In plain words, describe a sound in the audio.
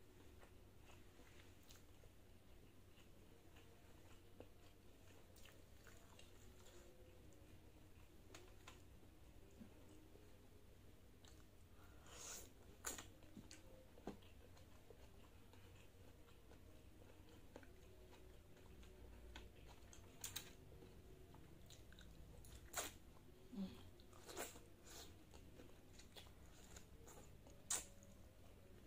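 A young woman chews food close to a microphone.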